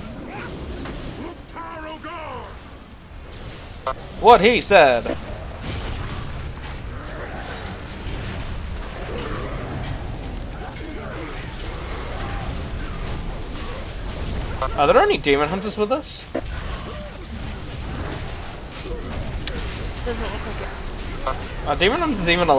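Magic blasts and weapon strikes crash again and again in a game battle.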